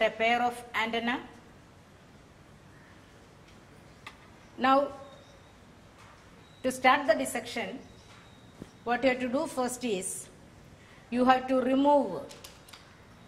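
A middle-aged woman speaks calmly and clearly, as if explaining something.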